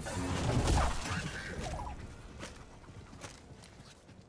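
A lightsaber hums and clashes in a fight.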